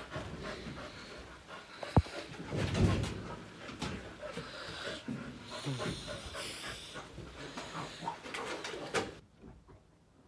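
A towel rubs briskly over a dog's wet fur.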